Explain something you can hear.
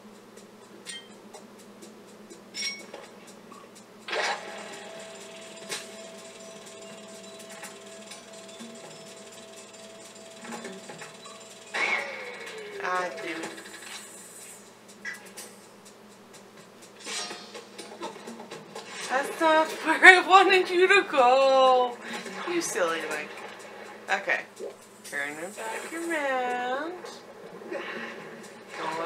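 Video game music and sound effects play.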